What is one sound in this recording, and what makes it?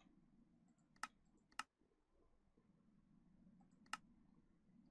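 Game menu buttons click a few times.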